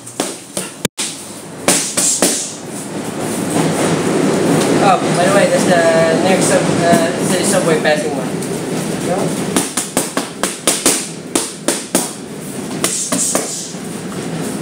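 Boxing gloves smack against punch mitts in quick bursts.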